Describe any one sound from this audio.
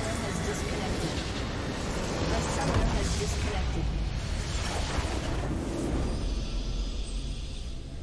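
A structure explodes with a loud crumbling blast.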